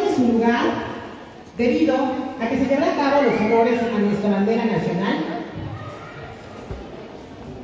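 A man speaks through a microphone and loudspeaker, echoing in a large open hall.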